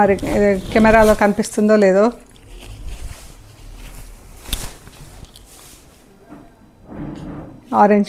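Fabric rustles as it is unfolded and handled.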